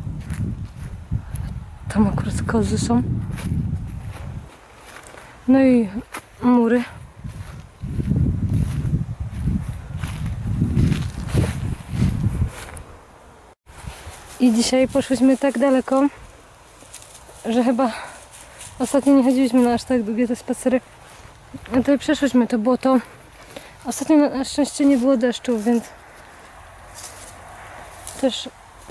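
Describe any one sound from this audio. Footsteps rustle and crunch through dry grass.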